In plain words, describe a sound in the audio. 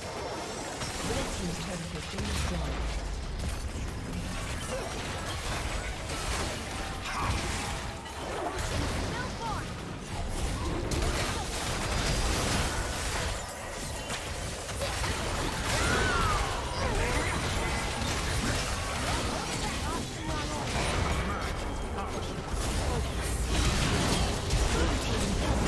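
Game spells blast and hits clash in a busy fight.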